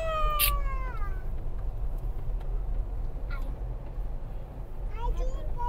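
A car rumbles steadily along a road, heard from inside.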